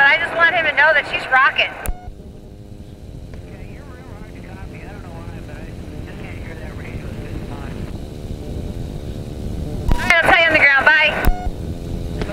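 A man talks over a helmet intercom.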